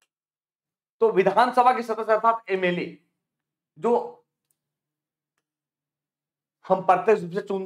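A man lectures with animation, close to a microphone.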